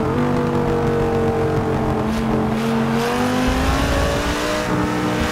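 A racing car engine roars at high revs, its pitch dipping and then climbing as it shifts gears.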